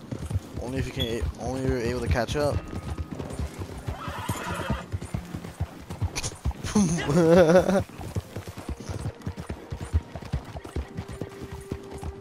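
Horse hooves pound steadily on a dirt trail at a gallop.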